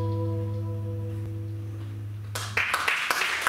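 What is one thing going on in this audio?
A keyboard holds a low, steady chord.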